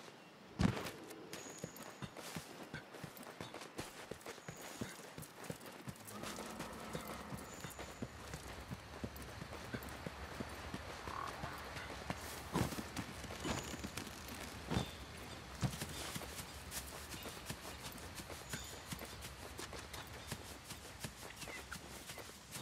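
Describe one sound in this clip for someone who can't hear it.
Footsteps crunch quickly over dirt and stone.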